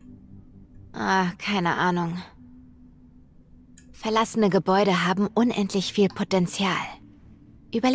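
A young woman speaks calmly up close.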